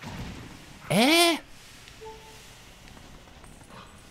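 A wolf digs and scrapes loose dirt.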